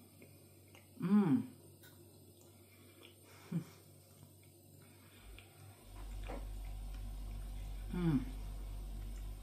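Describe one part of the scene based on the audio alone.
A woman hums with pleasure while eating.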